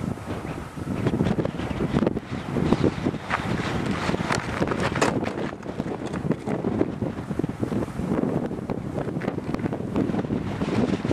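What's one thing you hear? Strong wind gusts and buffets outdoors.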